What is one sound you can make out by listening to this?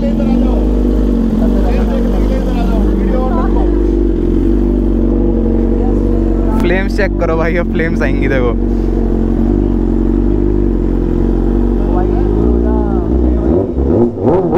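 A motorcycle engine idles with a steady, deep rumble.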